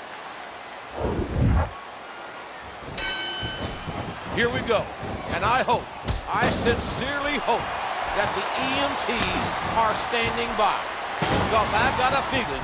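Bodies slam heavily onto a wrestling mat.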